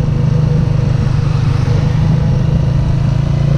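A car passes close by.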